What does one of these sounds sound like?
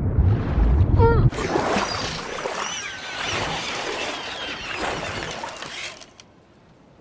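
Seagulls cry overhead.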